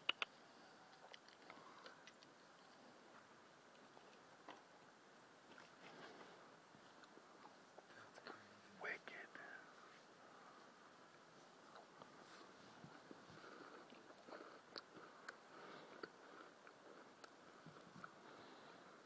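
A deer's hooves patter softly on dirt.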